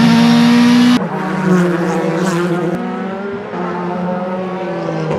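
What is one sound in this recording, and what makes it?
Race car engines roar as cars speed past on a track.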